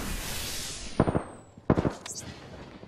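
Two sharp gunshots crack in quick succession.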